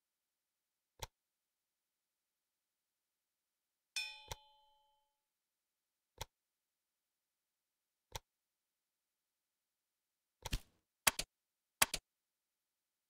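Short game interface clicks sound now and then.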